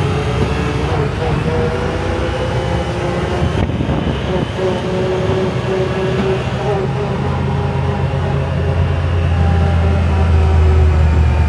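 An off-road vehicle's engine drones steadily while driving.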